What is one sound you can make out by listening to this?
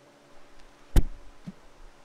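A foot thumps on a dance pad.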